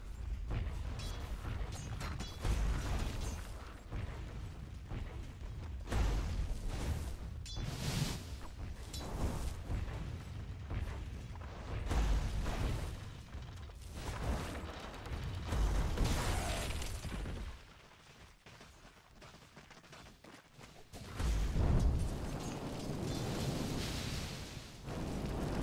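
Game spells boom and crackle in bursts during a fight.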